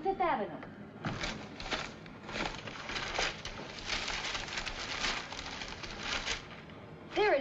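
A newspaper rustles and crackles as its pages turn.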